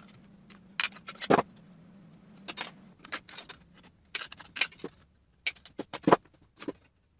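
Metal snips cut through thin sheet metal with sharp crunching snaps.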